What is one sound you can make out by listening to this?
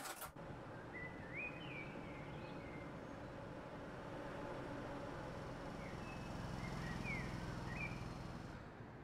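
Birds chirp and twitter outdoors.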